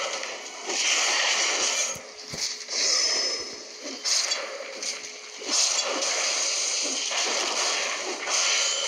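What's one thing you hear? Crackling energy blasts roar.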